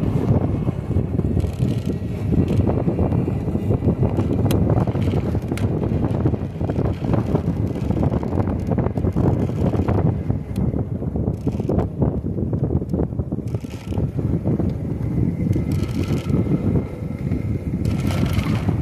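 Bicycle tyres roll and hum on a paved path.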